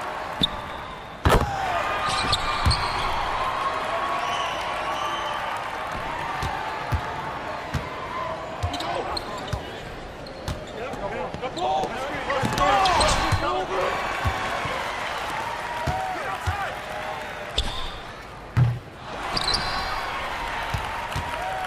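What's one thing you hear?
A basketball bounces on a hard court with dull thumps.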